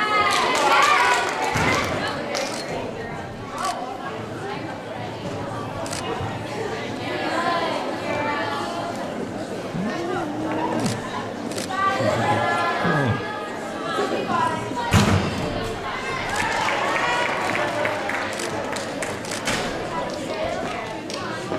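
Young women chatter and cheer nearby in a large echoing hall.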